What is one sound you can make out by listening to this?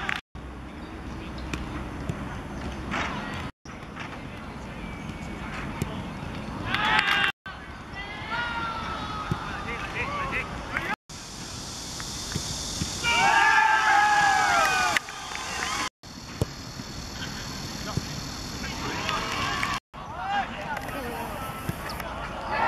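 A football is struck hard with a kick.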